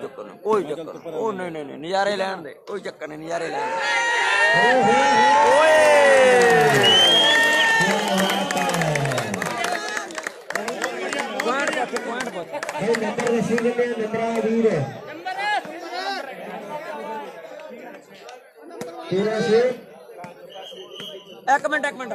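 Several young men shout to each other during a game.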